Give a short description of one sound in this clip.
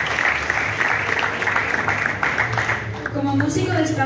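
Applause rings out in a room.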